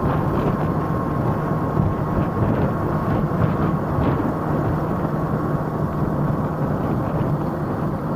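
An electric scooter hums steadily as it rides along a road.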